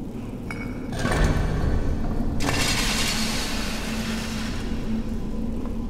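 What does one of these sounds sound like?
A heavy stone mechanism grinds and rumbles as it turns.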